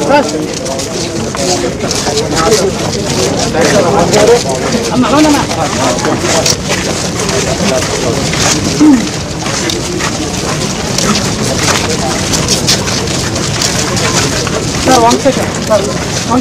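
A crowd of men talk and murmur close by, outdoors.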